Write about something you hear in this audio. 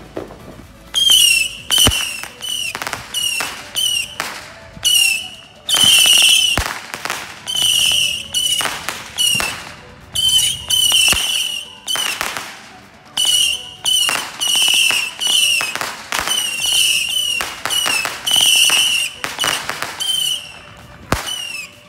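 Rockets whistle shrilly as they shoot up, one after another.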